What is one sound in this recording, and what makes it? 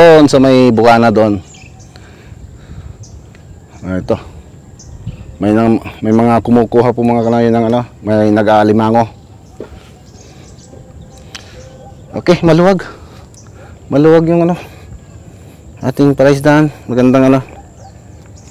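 A middle-aged man speaks calmly and close into a clip-on microphone, in short bursts with pauses.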